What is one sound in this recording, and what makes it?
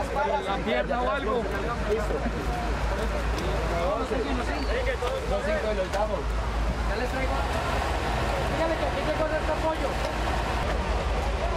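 Workers shift broken wooden debris.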